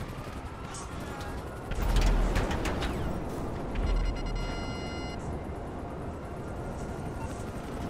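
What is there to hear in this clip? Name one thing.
An engine revs and whines as a flying motorbike speeds along.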